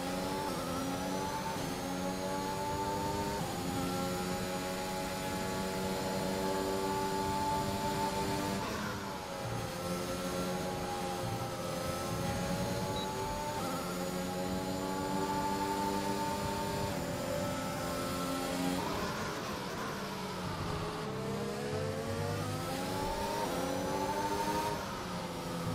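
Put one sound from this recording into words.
A racing car engine screams at high revs, rising through the gears and dropping as it slows for corners.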